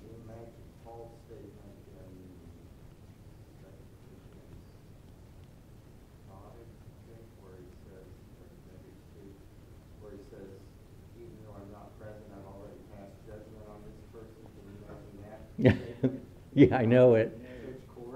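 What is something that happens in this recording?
An elderly man speaks calmly into a microphone, then loudly and with emphasis.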